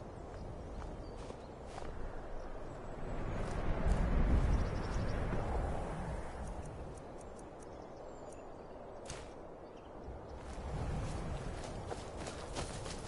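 Wind howls and gusts in bursts, rising and falling.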